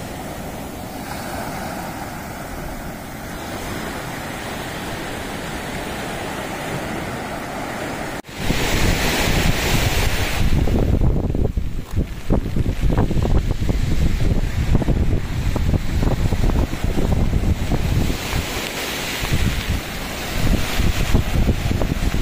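Waves wash and break onto a sandy shore.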